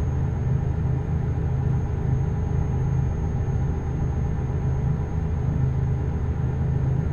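Tyres hiss on a road.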